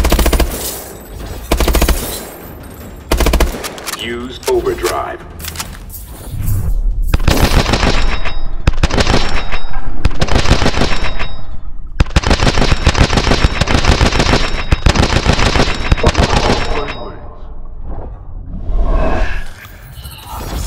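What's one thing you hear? A rifle fires rapid bursts of shots.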